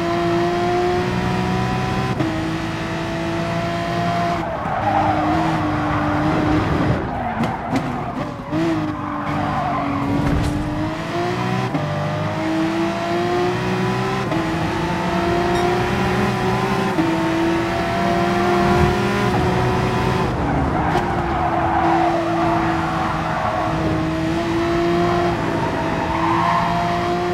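A racing car engine roars at high revs, rising in pitch and dropping sharply with each gear change.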